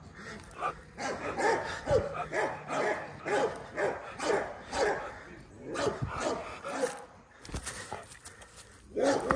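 A dog pants quickly and heavily close by.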